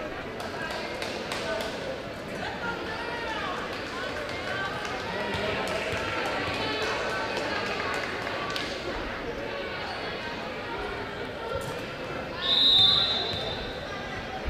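A crowd chatters and murmurs in a large echoing gym.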